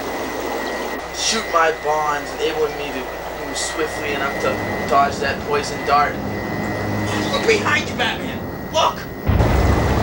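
A man speaks in a low, theatrical voice, close by.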